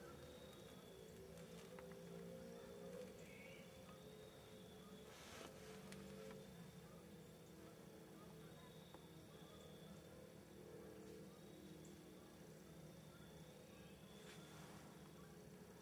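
A deer nibbles and rustles in dry leaves on the ground.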